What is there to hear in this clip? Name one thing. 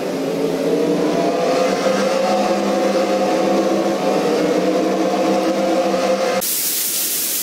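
Racing car engines drone steadily.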